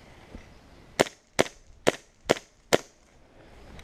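A paintball marker fires several quick shots close by.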